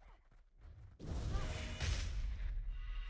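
A magic spell crackles and whooshes.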